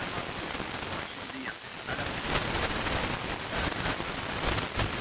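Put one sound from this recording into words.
A radio tuned to a weak station hisses and crackles with static.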